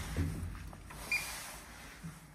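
An elevator button beeps.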